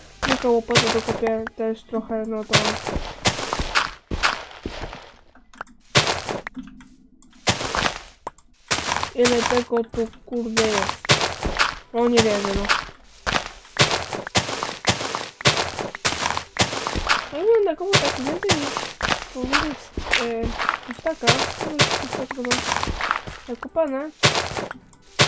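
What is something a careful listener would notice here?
Blocks of dirt and stone crunch and break under a pickaxe in a game.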